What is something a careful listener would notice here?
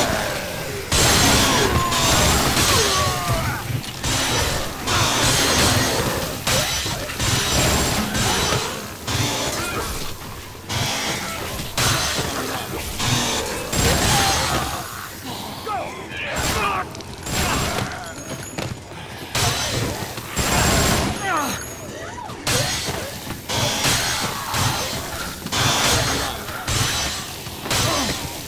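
Blades slash and thud into bodies in quick bursts.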